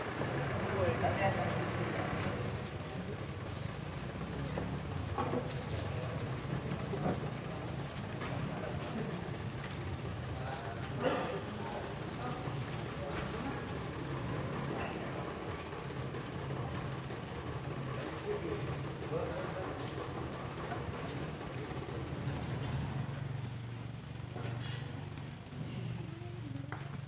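Feet shuffle on a hard floor as people file past.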